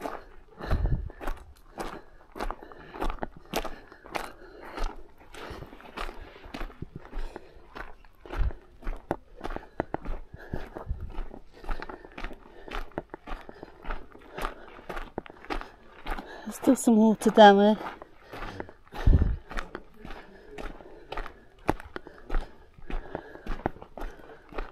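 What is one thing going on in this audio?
Footsteps crunch steadily on a dirt and gravel path.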